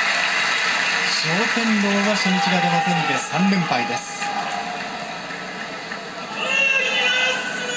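A large crowd murmurs in an echoing hall.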